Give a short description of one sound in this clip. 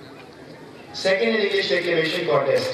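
A crowd claps loudly.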